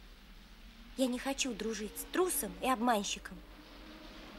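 A child speaks in a high, clear voice.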